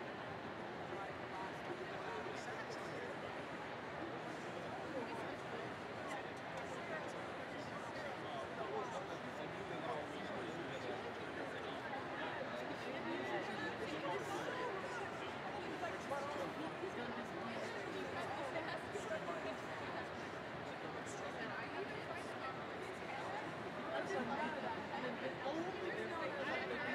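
A large crowd chatters and murmurs in a big echoing arena.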